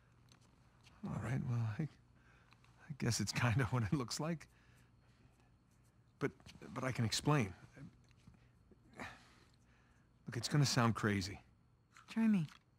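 A man speaks casually and with animation, close by.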